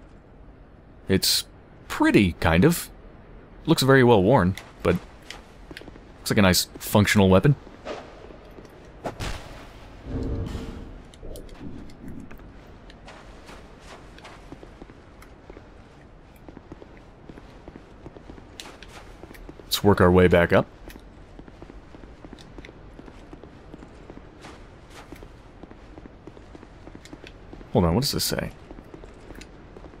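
Armoured footsteps clatter on stone.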